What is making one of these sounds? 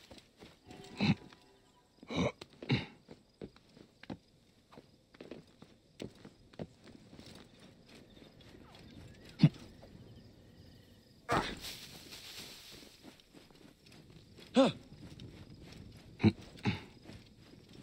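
Heavy thuds sound as a figure lands from climbing and jumping.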